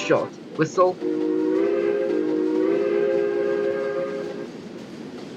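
A steam locomotive's whistle blows a long, steady chord, then fades.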